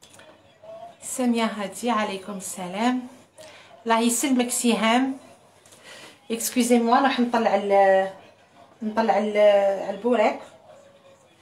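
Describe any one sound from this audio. A middle-aged woman speaks warmly and close by.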